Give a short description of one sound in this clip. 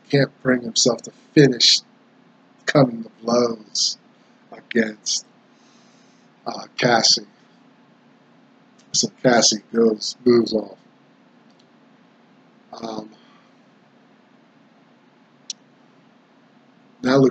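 A middle-aged man speaks with animation close to a microphone, in short bursts with pauses.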